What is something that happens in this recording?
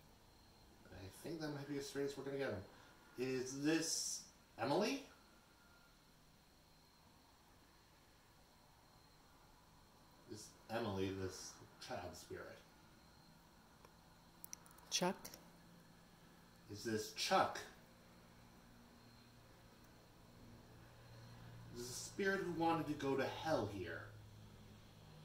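A young man talks calmly nearby, in short bursts with pauses.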